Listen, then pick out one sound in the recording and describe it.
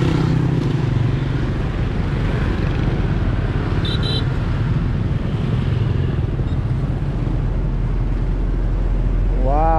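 A diesel cargo barge's engine chugs as the barge passes below.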